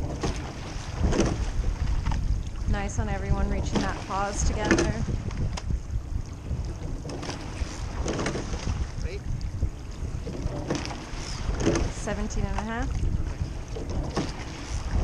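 Water splashes and swishes past a boat.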